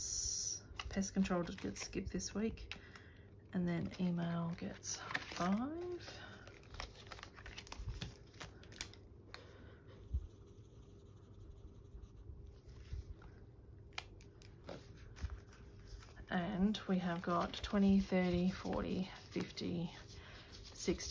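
Banknotes rustle and crinkle as hands handle them.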